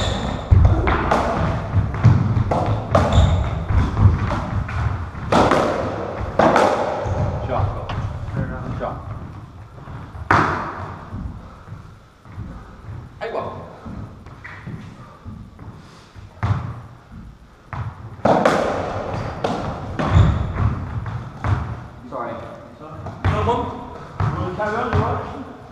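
A squash ball smacks sharply against walls and racquets, echoing around a hard-walled court.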